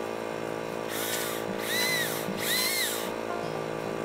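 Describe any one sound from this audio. A chainsaw revs in short bursts.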